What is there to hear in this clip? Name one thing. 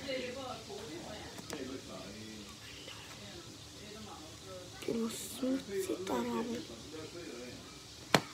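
Plastic clicks as a game controller is handled.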